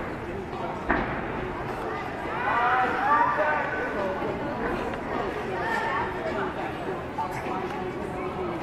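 A gym mat thumps as it is dragged and dropped.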